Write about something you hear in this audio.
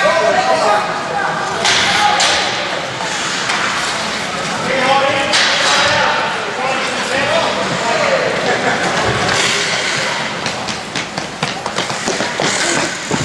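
Boys talk and call out to each other in a large echoing rink.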